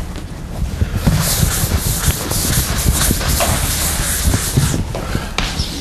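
A board eraser rubs across a chalkboard.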